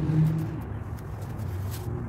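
Hands pat and press on a padded chair back with soft thumps.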